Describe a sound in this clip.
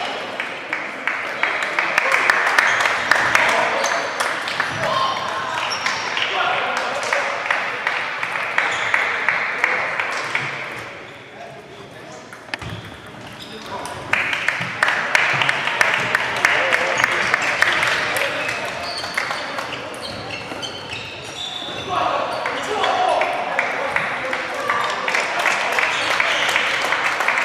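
Table tennis balls click and bounce on many tables in a large echoing hall.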